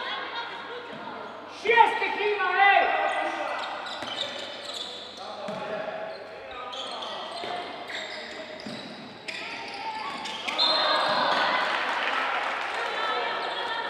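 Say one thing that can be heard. Sports shoes squeak on a wooden floor.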